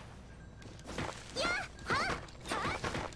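A sword swings and strikes with a sharp metallic swish.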